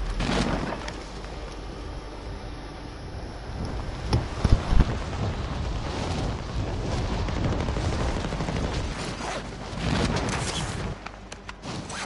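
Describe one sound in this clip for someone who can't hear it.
Wind rushes steadily past during a fast fall through the air.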